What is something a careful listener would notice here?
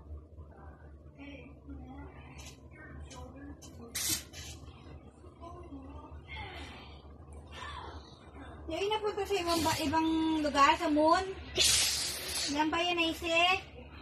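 A young woman talks and shouts playfully close by.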